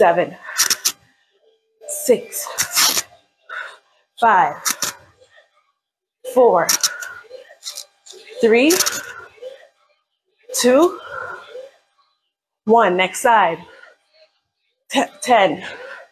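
A woman sings loudly into a microphone in short, bursting phrases.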